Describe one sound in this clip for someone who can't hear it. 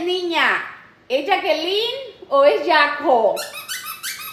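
A parrot chatters loudly in a squawky, voice-like way close by.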